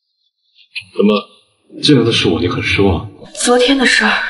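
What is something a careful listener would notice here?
A young man speaks in a low, tense voice, close by.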